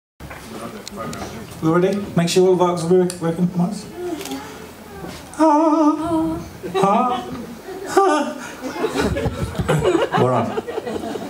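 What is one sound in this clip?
A live band plays music on stage.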